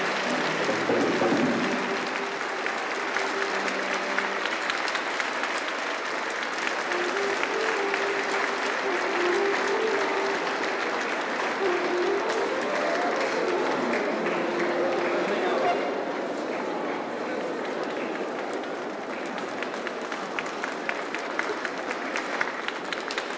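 A large crowd chatters and cheers in a big echoing hall.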